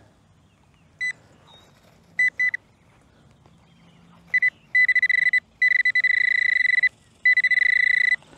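A metal detector beeps with a steady high tone.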